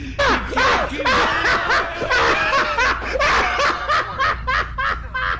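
A man laughs loudly and hysterically close by.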